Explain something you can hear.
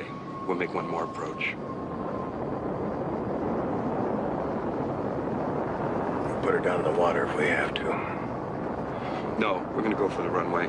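A middle-aged man speaks tensely nearby.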